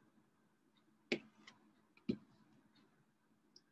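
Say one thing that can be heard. A ruler taps down on paper.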